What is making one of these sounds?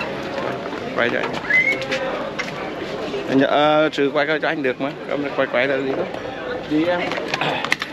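A man speaks close by, talking with animation.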